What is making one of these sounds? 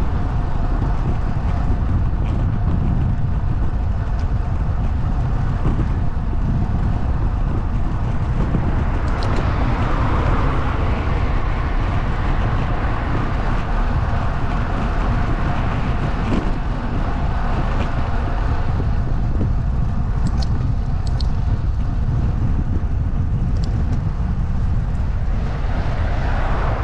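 Wind rushes and buffets loudly against a moving microphone outdoors.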